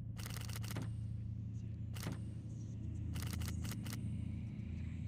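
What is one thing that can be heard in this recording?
A metal dial clicks rapidly as it turns.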